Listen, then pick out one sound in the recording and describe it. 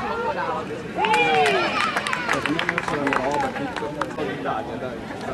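Spectators clap their hands.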